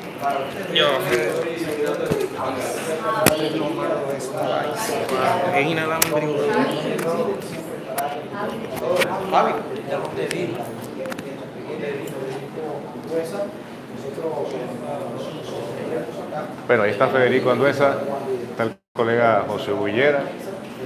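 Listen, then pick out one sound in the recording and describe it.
A young man speaks calmly into microphones, heard close up.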